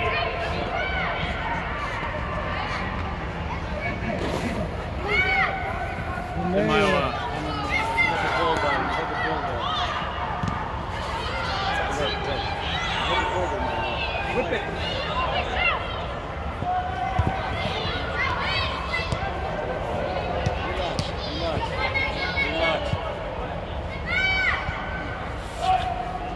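Young boys shout and call out in a large echoing air dome.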